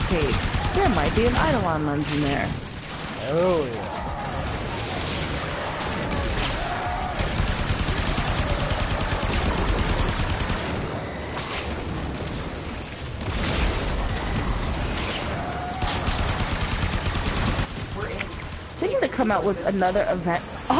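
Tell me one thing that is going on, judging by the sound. Rapid gunfire rattles on and on.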